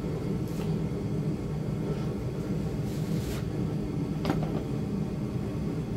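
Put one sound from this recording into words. A knife scrapes on hard horn.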